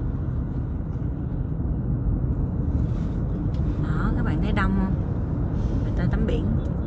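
A car drives along a road, with a steady low rumble from inside.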